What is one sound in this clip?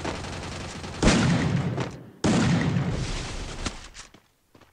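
Gunshots ring out in loud bursts.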